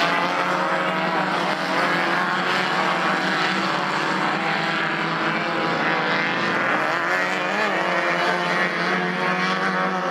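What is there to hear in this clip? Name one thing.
Several car engines roar and rev loudly as they race over dirt.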